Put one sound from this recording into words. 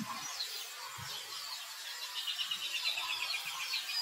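A monkey squeals close by.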